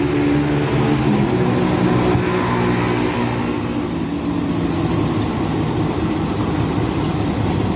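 A diesel locomotive engine drones steadily nearby.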